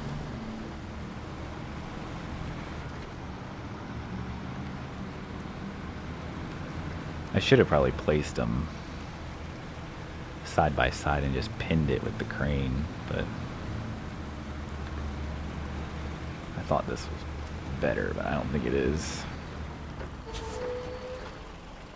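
A heavy truck engine rumbles steadily as the truck drives along.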